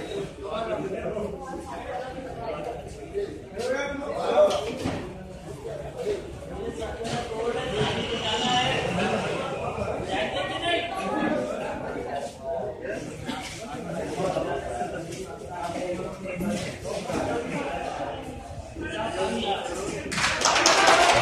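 A crowd of men chatters nearby.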